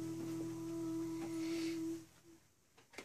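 A young woman sings a long, held note.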